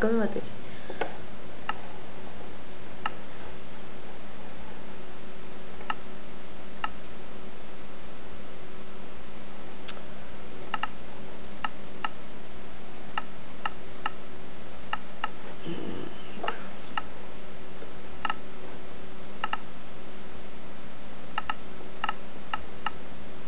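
Menu buttons click with short, sharp clicks, again and again.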